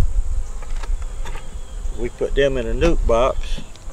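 A wooden lid is lifted off a beehive box.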